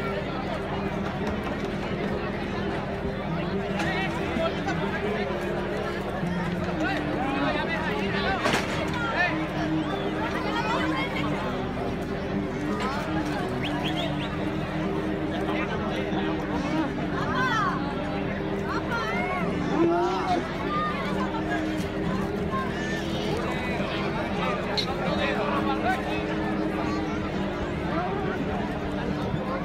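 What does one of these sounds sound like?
A large crowd murmurs and shouts outdoors.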